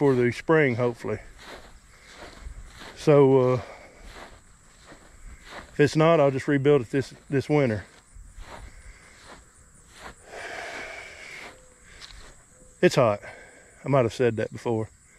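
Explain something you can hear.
A middle-aged man talks casually in pauses, close to the microphone.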